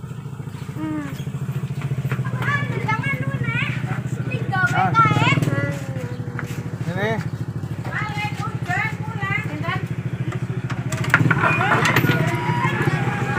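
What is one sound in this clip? A motorbike engine idles close by.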